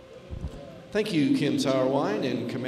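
A man talks loudly close by in a large echoing hall.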